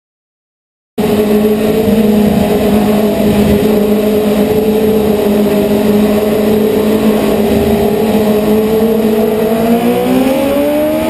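A kart engine drones loudly up close and revs higher toward the end.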